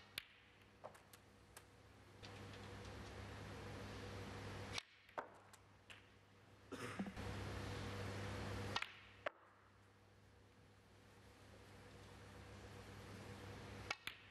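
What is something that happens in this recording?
Snooker balls click sharply as a cue strikes them.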